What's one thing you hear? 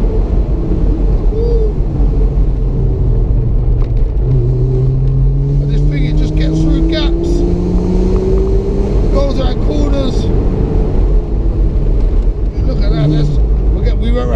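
Wind rushes past in an open car.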